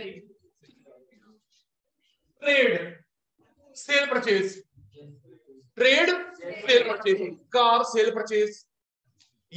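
A man lectures in a clear, animated voice through a small clip-on microphone.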